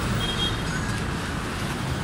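A young woman talks on a phone nearby.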